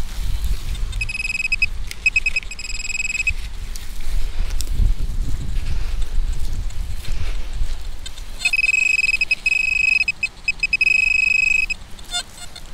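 A metal detector's pinpointer beeps and buzzes in short and steady bursts.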